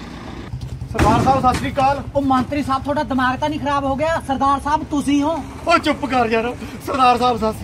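A man talks loudly outdoors with animation.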